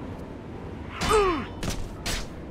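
A creature lets out a short shriek.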